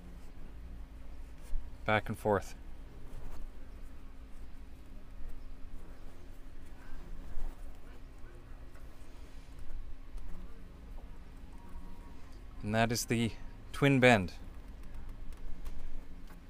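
A rope rustles and creaks as a knot is tied and pulled tight.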